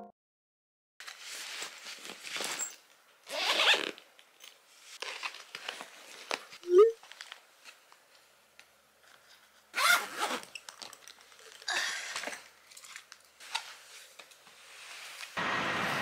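Clothes rustle and a suitcase is handled in short bursts.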